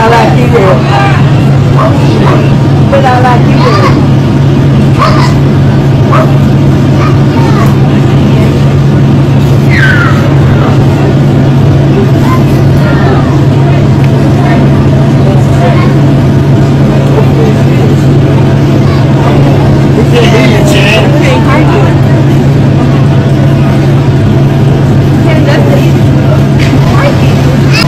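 A crowd of men and women talks and exclaims excitedly nearby.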